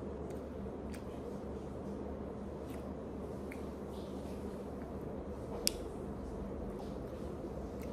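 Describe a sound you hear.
Paper crinkles and tears as a lid is peeled off a small cup.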